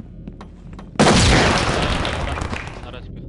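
A stun grenade goes off with a loud bang and a long hiss.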